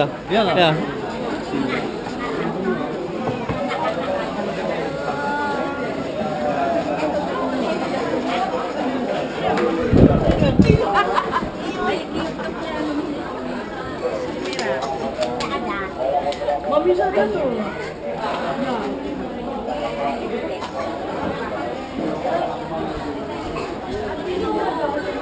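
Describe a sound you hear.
A crowd of people chatters all around under a roof.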